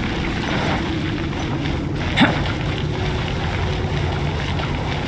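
Footsteps patter quickly up stone steps.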